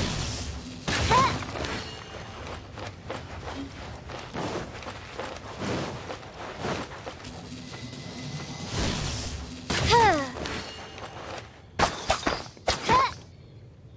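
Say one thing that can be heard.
A young woman's voice calls out in short bursts.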